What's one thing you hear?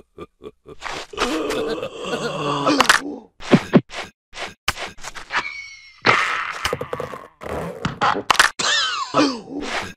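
Cartoon creatures squeal and babble in high, funny voices.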